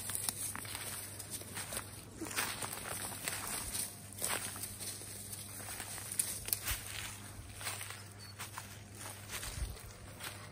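Footsteps crunch on dry leaves and twigs on the forest floor.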